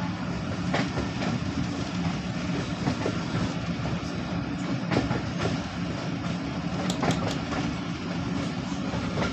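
A train rumbles steadily along the tracks, wheels clattering on the rails.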